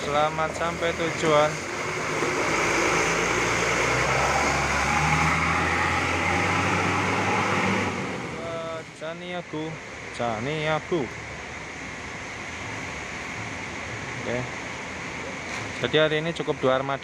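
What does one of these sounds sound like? A bus horn plays a musical tune in short bursts.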